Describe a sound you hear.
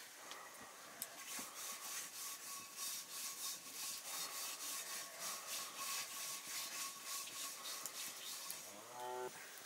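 A metal pot scrapes rhythmically against the ground.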